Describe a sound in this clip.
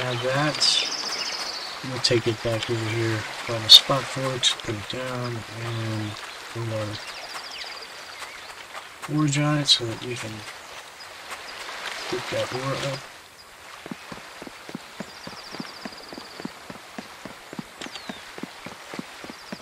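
Footsteps crunch steadily on the ground.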